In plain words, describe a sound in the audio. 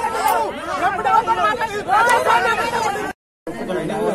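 A crowd of men talk over one another with animation, close by.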